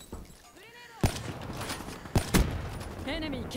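A rifle fires sharp, loud shots.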